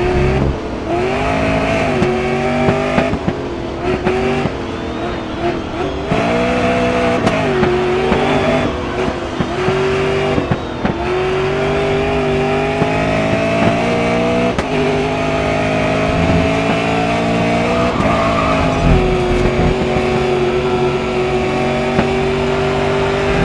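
A racing car engine roars loudly, revving up and dropping in pitch with each gear change.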